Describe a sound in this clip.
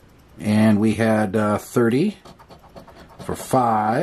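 A coin scrapes across a scratch card.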